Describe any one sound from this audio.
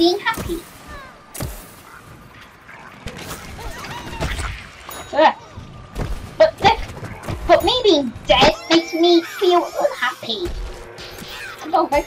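Cartoonish game weapons fire in rapid bursts.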